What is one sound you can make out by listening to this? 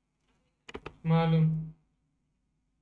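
A young man calls out a short, loud phrase close to a microphone.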